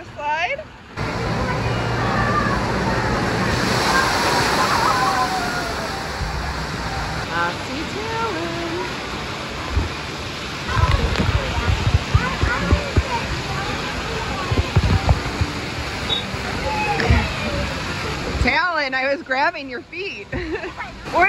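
Children shout and squeal nearby.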